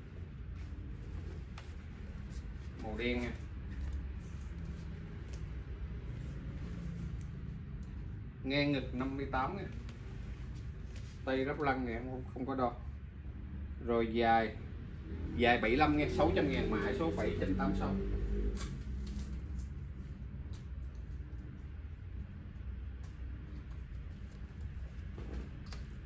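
A fabric jacket rustles as it is handled.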